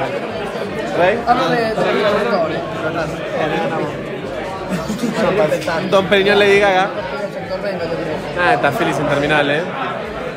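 A crowd murmurs in the background.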